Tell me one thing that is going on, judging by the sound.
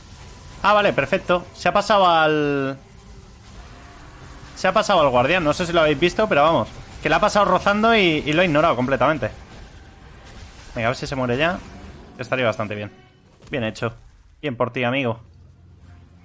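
A young man talks with animation into a microphone, close by.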